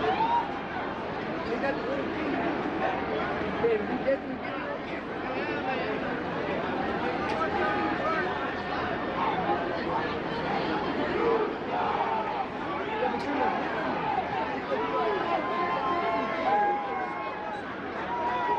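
A large stadium crowd murmurs and chatters all around.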